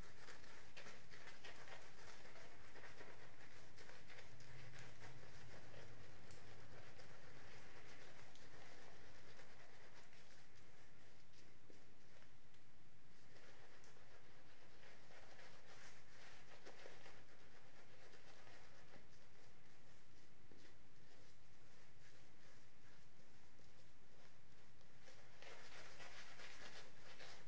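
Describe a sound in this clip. A razor scrapes across stubble in short strokes.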